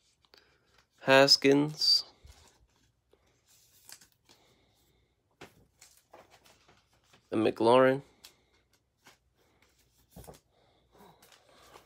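Cards rustle and slide in a plastic sleeve.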